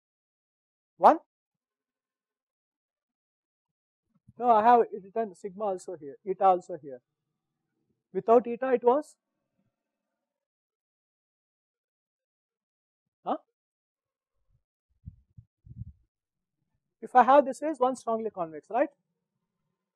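A man lectures calmly through a clip-on microphone, in short bursts with pauses.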